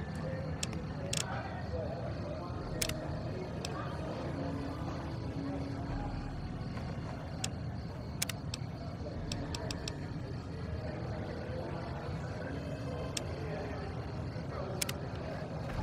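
Menu selections click sharply, several times.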